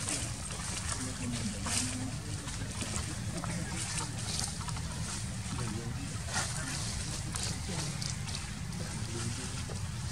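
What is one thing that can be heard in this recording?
A monkey chews and bites into juicy fruit.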